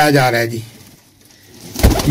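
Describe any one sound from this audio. A pigeon flaps its wings briefly.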